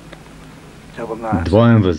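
A young woman speaks sharply, close by.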